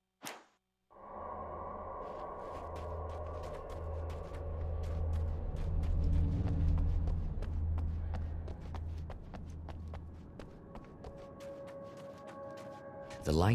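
Footsteps run quickly over wooden boards and dirt.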